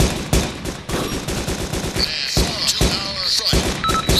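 Rifle shots crack in quick succession.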